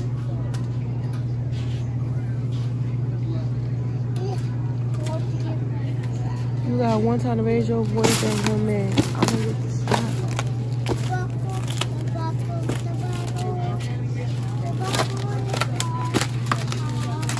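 Plastic meat packages rustle and clack as they are stacked in a shopping cart.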